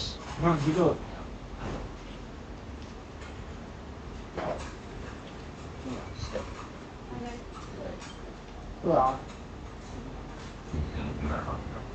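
A young woman slurps and chews food, close to the microphone.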